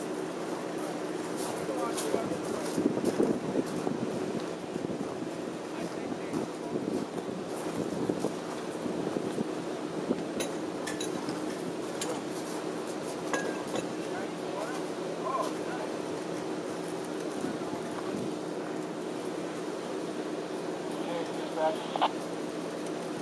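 A streetcar's motor hums steadily.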